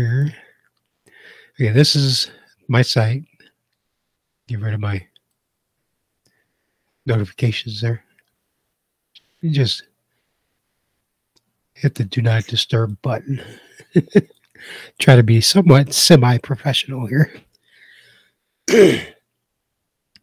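An older man talks calmly into a close microphone, in short bursts with pauses.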